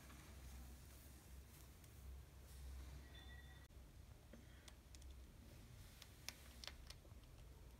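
Tissue paper rustles and crinkles close by.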